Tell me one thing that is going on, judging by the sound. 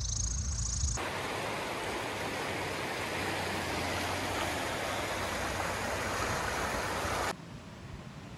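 A river rushes and splashes.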